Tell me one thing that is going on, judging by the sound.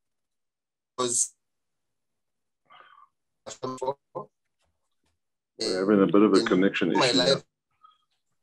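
A man speaks in short bursts over an online call.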